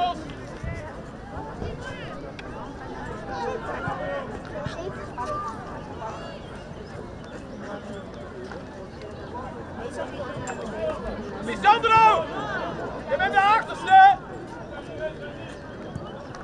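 Players shout to each other across an open field outdoors.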